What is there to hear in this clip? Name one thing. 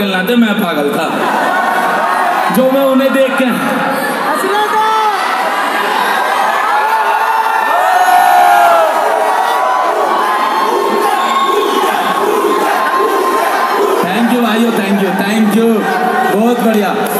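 A young man sings into a microphone through loud speakers.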